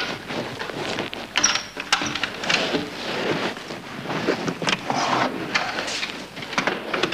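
A wooden cupboard door creaks open.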